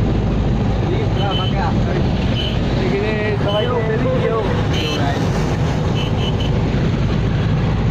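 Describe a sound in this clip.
Young men laugh and chatter close by.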